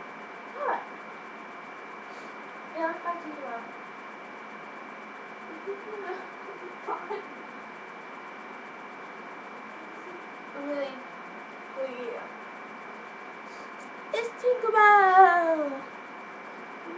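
A young girl talks and squeals close by.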